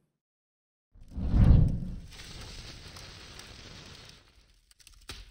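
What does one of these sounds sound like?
A magical shimmering whoosh swells loudly, then hisses softly and fades.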